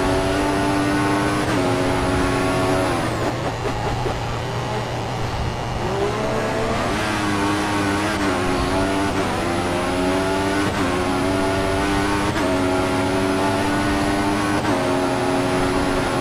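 A racing car engine screams at high revs, dropping in pitch with each gear shift and rising again.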